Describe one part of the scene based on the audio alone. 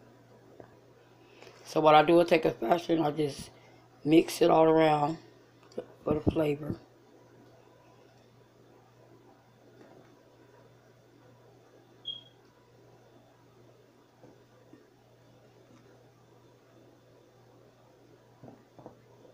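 A spatula scrapes and stirs softly through flour in a ceramic bowl.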